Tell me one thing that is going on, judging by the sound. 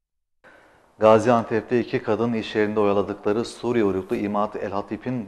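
A man speaks calmly and clearly into a microphone, reading out.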